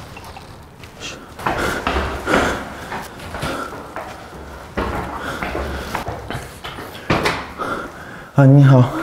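Footsteps climb concrete stairs in an echoing stairwell.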